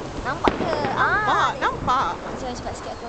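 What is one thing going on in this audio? Fireworks pop and bang in the distance.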